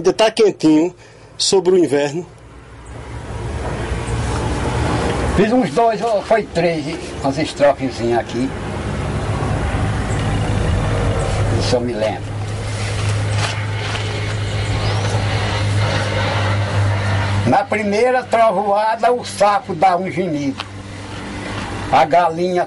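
An elderly man speaks calmly, close by.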